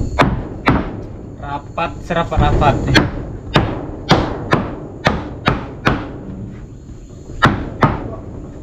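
A hammer taps on wooden boards.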